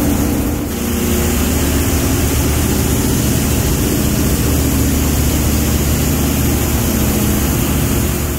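A conveyor belt runs with a steady mechanical hum and rattle.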